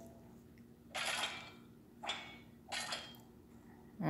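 Short electronic hit and whoosh effects sound.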